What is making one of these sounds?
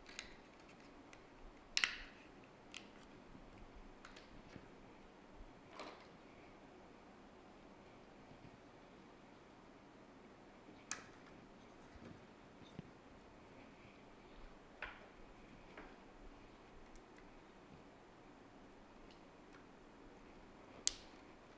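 Hands handle small plastic parts and wires, with light clicks and taps on a desk mat.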